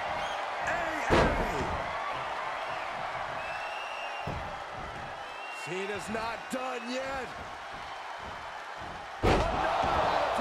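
A body slams hard onto a wrestling mat with a loud thud.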